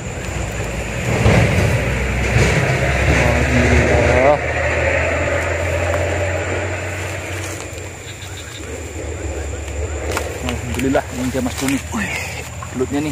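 A stick rustles through grass and dry leaves.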